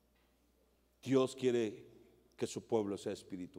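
A man speaks loudly and with feeling through a microphone in a large room.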